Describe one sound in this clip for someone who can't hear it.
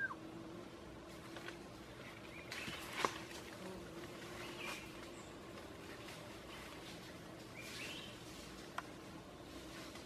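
A man climbs through dry leaves and branches that rustle and crackle.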